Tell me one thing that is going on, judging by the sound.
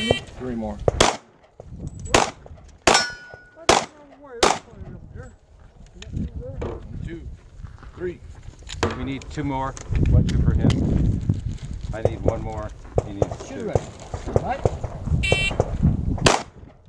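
A pistol fires a quick series of sharp, loud shots outdoors.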